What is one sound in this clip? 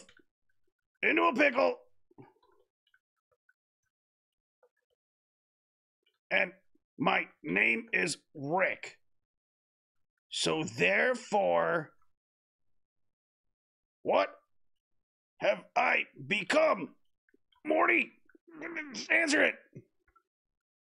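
A man speaks into a close microphone, with animation and in bursts, pausing in between.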